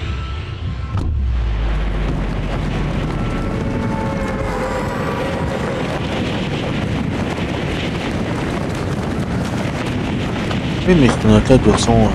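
Wind rushes steadily during a skydive.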